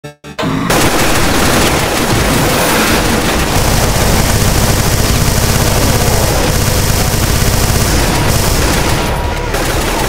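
A rapid-fire gun rattles in fast bursts.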